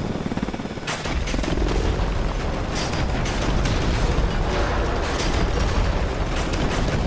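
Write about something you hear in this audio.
Gunfire crackles in rapid bursts.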